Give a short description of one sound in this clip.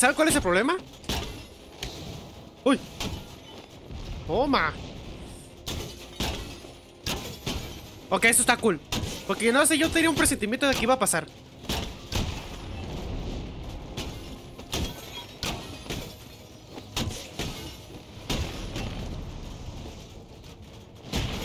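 Punches and kicks thud and smack in a brawl.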